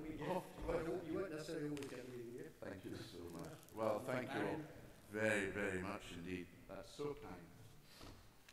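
An elderly man speaks calmly into a microphone in a large echoing hall.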